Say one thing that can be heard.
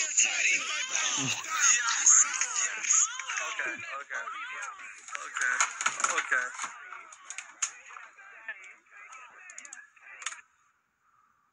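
A man shouts with excitement through a microphone.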